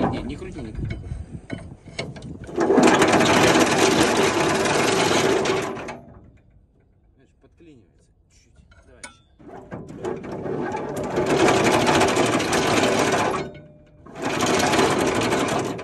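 A winch clicks and whirs loudly as its handle is cranked in quick bursts.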